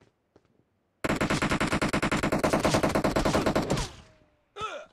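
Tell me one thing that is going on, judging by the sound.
Rapid gunfire rattles loudly and close by.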